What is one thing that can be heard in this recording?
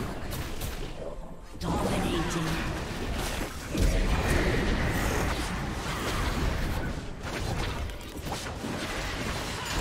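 Spells crackle and blows clash in a fast fantasy battle.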